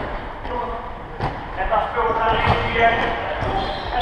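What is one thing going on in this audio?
A handball slams against a wall and bounces on the floor.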